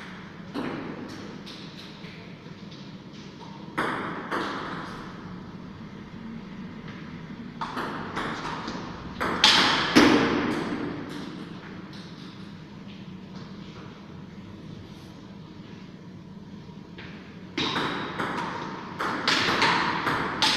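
A ping-pong ball clicks back and forth off paddles and a table in an echoing room.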